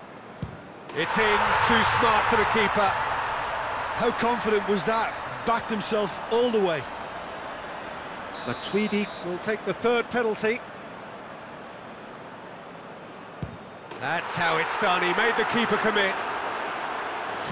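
A large crowd erupts in loud cheers.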